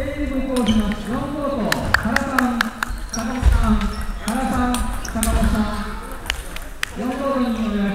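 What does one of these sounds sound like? A ping-pong ball clicks back and forth on paddles and a table.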